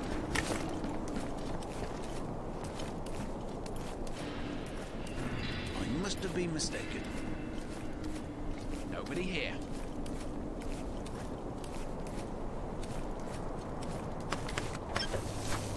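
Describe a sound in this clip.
Footsteps pad softly on stone.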